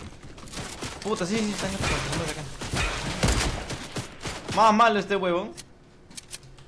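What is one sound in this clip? A young man talks excitedly into a close microphone.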